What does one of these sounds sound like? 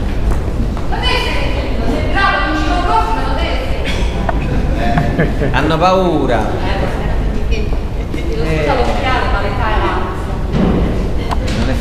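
A young woman sings into a microphone through a loudspeaker in an echoing room.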